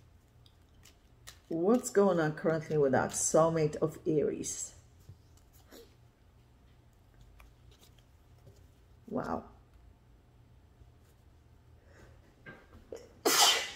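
Playing cards slide and tap softly as they are dealt onto a cloth.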